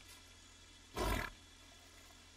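Leafy plants rustle as someone brushes through them.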